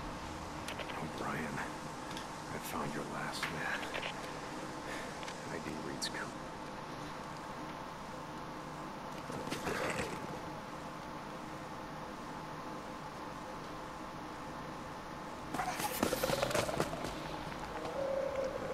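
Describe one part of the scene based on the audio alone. A man speaks quietly in a low, tired voice.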